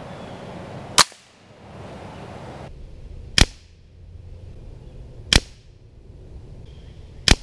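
An air rifle fires with a sharp crack.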